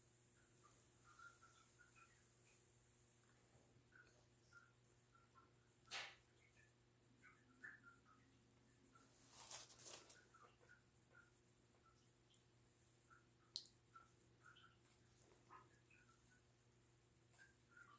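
Fingers dab into a pot of wet slip with soft wet clicks.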